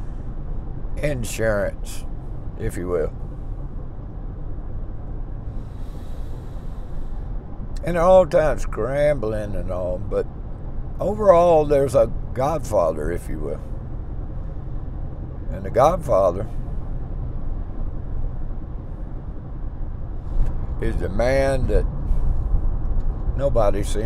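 A middle-aged man talks calmly close by, pausing often.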